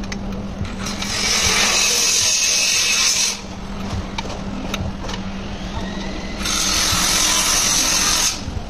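A ratchet wrench clicks rapidly as bolts are turned on an engine.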